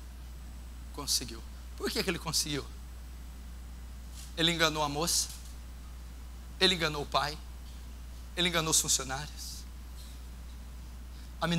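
A man preaches into a microphone in a reverberant hall, speaking in short, emphatic phrases with pauses between them.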